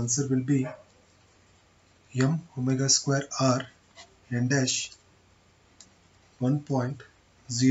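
A marker pen scratches softly on paper.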